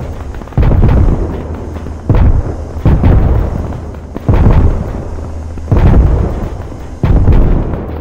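Heavy explosions boom one after another, each rumbling and fading.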